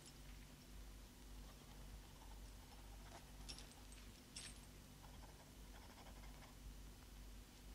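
Metal chains clink softly.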